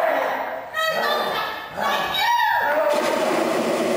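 Feet scuff on a hard stage floor during a scuffle.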